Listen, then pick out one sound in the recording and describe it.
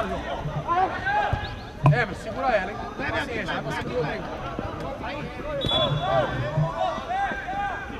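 Men shout to each other across an open field.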